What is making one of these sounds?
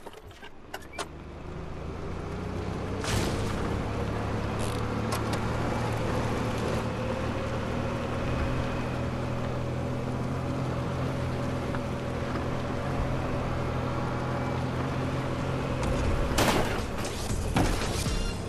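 A small cart engine hums steadily and revs up as it drives.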